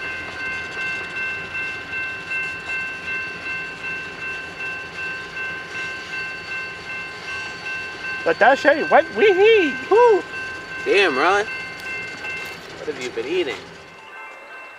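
Train wheels squeal with a steady high ringing.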